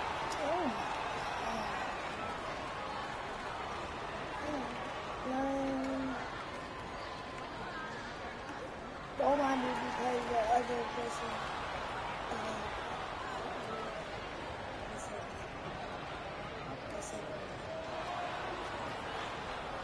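A crowd murmurs and cheers steadily in a large arena.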